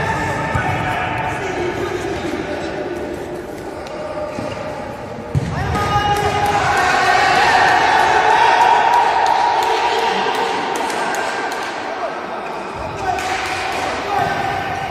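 Men shout to each other across an echoing indoor hall.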